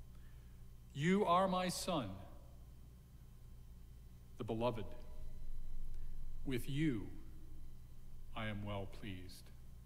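An elderly man speaks calmly and slowly into a microphone, with pauses between phrases.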